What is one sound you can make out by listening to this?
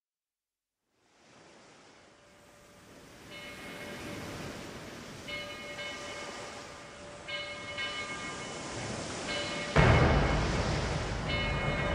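An electric guitar plays distorted notes and chords close by.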